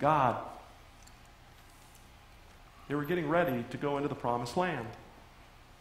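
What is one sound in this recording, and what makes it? A middle-aged man speaks with emphasis through a microphone.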